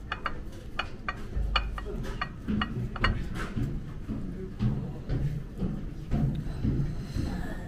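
Chopsticks tap and scrape against a ceramic plate.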